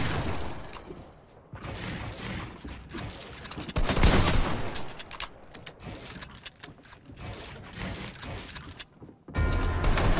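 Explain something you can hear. Wooden building pieces clack into place in quick bursts.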